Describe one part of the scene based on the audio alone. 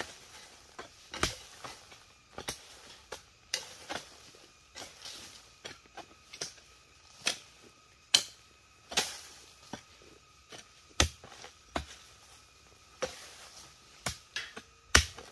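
Hoes and mattocks strike the dry ground again and again with dull thuds.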